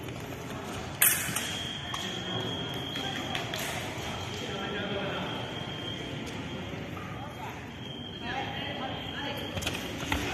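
Fencing blades clash with a sharp metallic ring.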